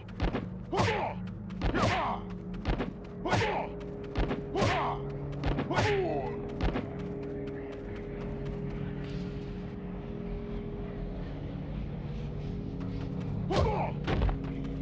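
Blows land with sharp thuds in a fight.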